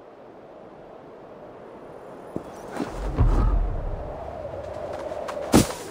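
Wind rushes and roars, growing louder.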